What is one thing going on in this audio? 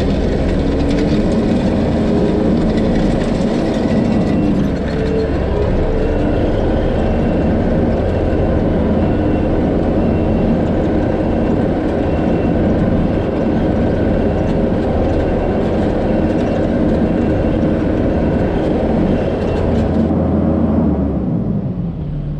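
A small engine drones steadily close by.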